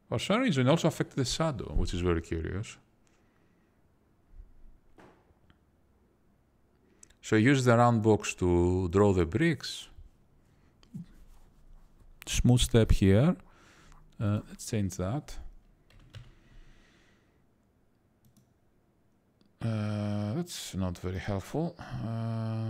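A man talks calmly and haltingly, close to a microphone.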